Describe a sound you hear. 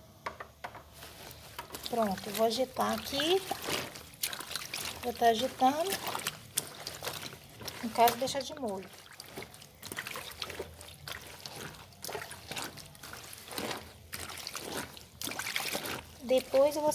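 Wet cloth is rubbed and squelches in water by hand.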